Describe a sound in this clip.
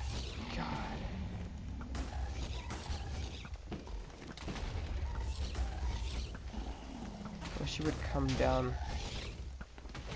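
A large dragon growls and roars.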